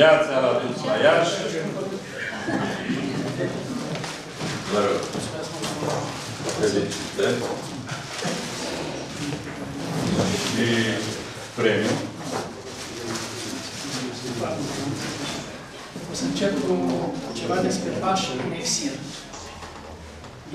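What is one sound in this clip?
An elderly man speaks to a room, his voice close and a little echoing.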